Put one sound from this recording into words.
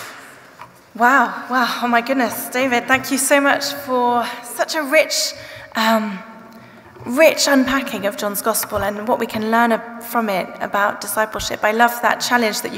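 A young woman speaks calmly into a microphone over loudspeakers in a large hall.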